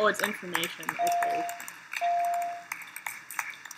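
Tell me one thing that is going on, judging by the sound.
Two short electronic chimes ring out, one after the other.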